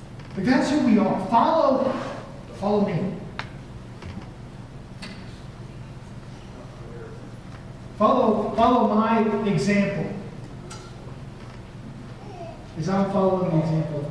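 A man speaks calmly through a microphone, in pauses.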